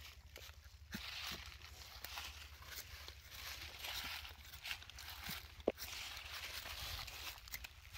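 A blade scrapes and shaves bark from a tree.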